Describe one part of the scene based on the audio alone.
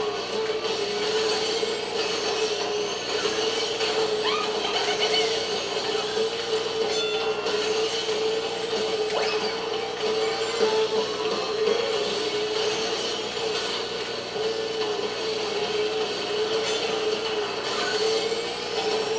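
A kart engine hums steadily at high speed.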